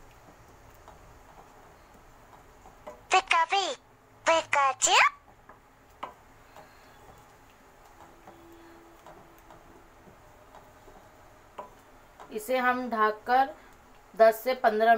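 A wooden spoon stirs and scrapes thick paste in a pan.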